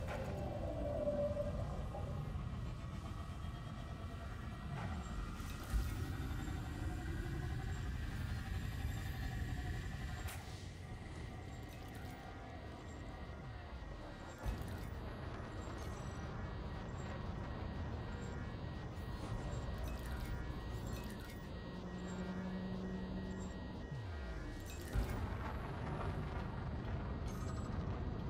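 A spaceship engine hums and rumbles steadily.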